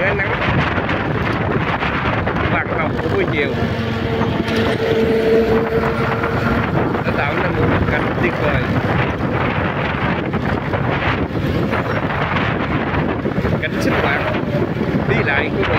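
Wind roars steadily against the rider on a moving motorbike.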